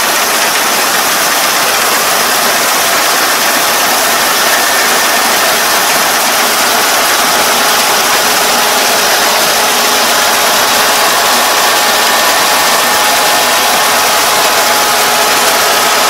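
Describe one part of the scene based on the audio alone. A combine harvester engine runs loudly and steadily close by.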